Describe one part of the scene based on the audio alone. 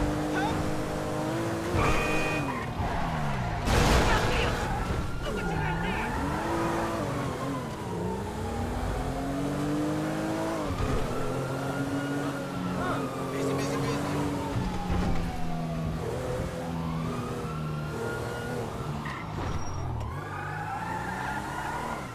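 A car engine revs hard and shifts up and down through its gears.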